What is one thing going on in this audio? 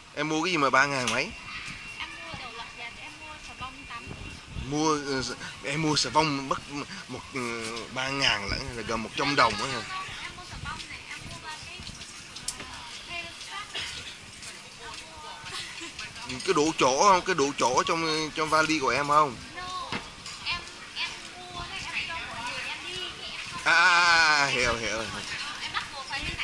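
A man talks close by in short bursts.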